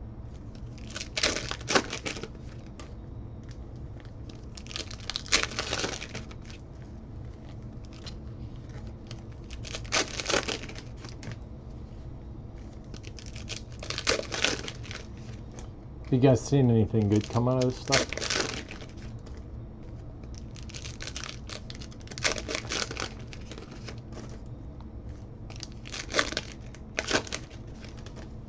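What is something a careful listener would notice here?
Foil card packs crinkle and tear open in bursts.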